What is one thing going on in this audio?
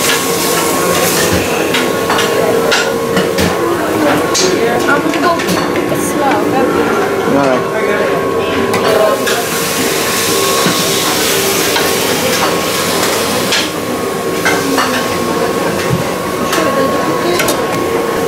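A serving spoon scrapes and clinks against a metal pan.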